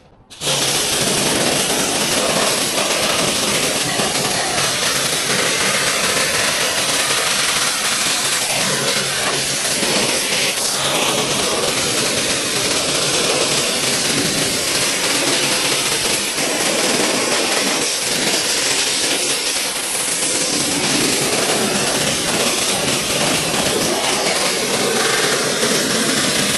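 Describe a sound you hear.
A pressure washer sprays water and foam with a loud, steady hiss, close by.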